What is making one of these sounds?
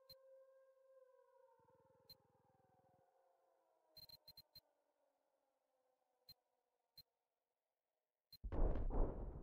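Short electronic clicks sound as menu items are selected.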